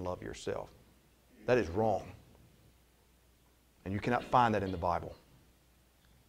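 A man speaks with emphasis into a microphone, pausing between phrases.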